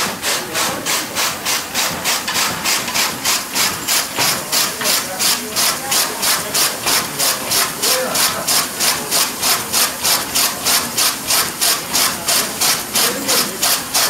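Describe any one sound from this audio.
An old threshing machine rattles and swishes rhythmically as it runs.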